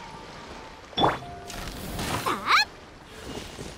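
A magical chime shimmers with a rising whoosh.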